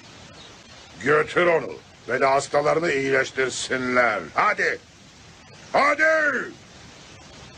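A man speaks gravely and forcefully, close by.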